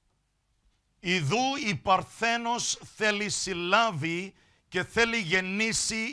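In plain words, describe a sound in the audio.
A woman speaks loudly through a microphone.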